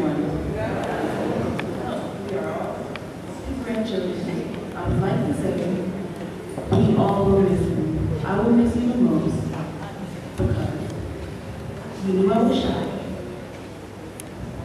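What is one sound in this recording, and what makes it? A woman speaks slowly through a microphone and loudspeakers in a large echoing hall.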